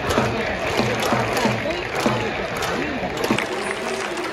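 Spectators clap their hands in rhythm.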